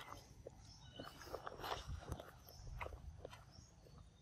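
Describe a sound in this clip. Dry leaves rustle underfoot.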